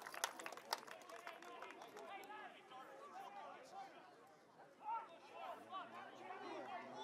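Adult spectators nearby talk casually outdoors.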